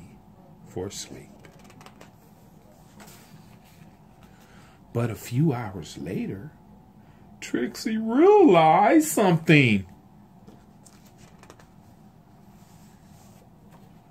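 A page of a book rustles as it is turned.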